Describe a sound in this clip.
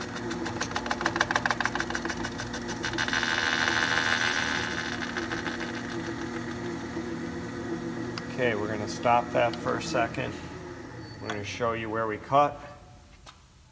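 A lathe motor whirs steadily and then winds down to a stop.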